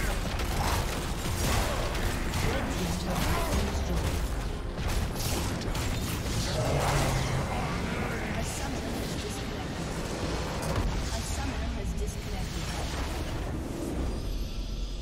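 Fantasy battle effects crackle and whoosh in quick bursts.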